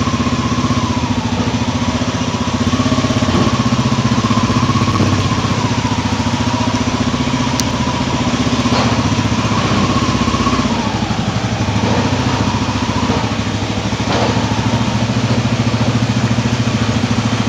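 A motorcycle engine runs at low speed.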